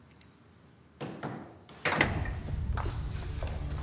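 Footsteps and rustling clothes sound as people walk through a doorway.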